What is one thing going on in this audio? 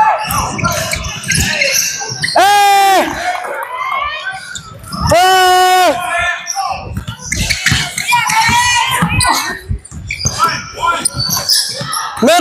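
A basketball thumps as it is dribbled on the floor.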